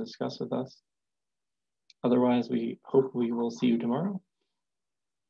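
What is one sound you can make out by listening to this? A man speaks through an online call, with pauses between his words.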